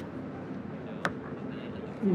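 An arrow thuds into a target.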